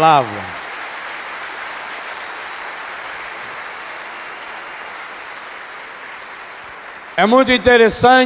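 A large crowd cheers and roars in a big open hall.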